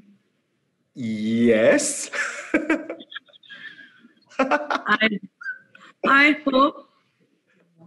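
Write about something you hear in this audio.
A man laughs heartily over an online call.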